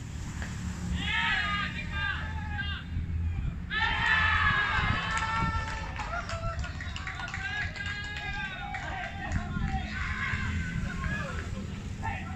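Young men shout and cheer excitedly across an open field.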